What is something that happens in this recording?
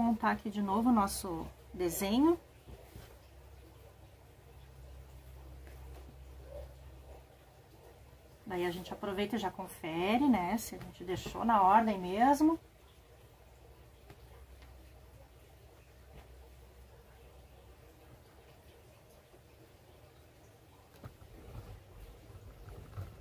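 Fabric pieces rustle softly as hands move them around.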